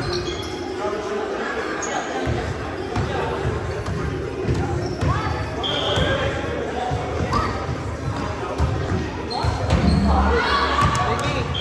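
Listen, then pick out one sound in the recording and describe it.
A volleyball thumps off hands and arms.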